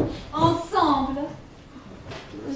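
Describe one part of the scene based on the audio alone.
A woman sings on a stage.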